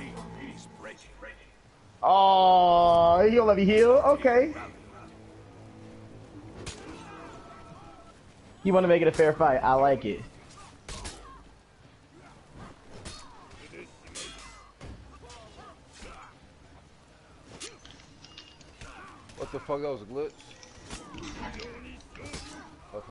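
Swords clash and clang in a noisy battle.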